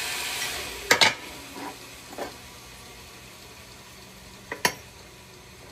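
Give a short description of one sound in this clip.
Metal blocks clink against a steel plate.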